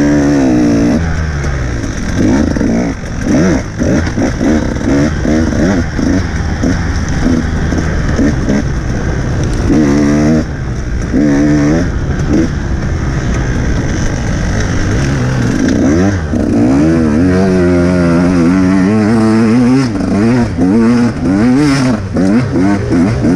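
A dirt bike engine revs hard, rising and falling in pitch.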